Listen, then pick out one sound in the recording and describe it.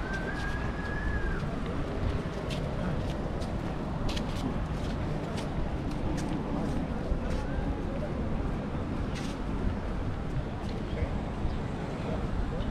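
Footsteps scuff on paving stones.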